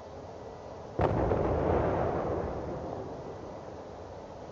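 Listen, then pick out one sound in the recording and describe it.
A heavy gun fires with a loud boom that rumbles away.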